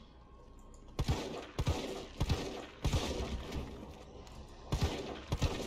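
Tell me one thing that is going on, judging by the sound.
A handgun fires shot after shot.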